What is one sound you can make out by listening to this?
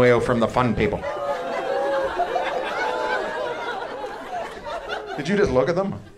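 An audience laughs.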